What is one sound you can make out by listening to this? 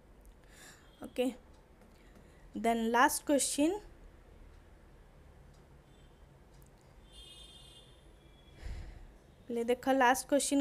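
A woman speaks through a microphone in short bursts, explaining calmly.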